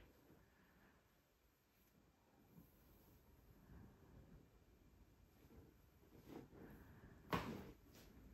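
Hands press and tap on a head and neck.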